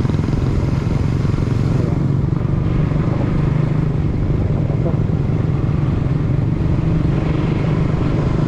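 Wind buffets past loudly.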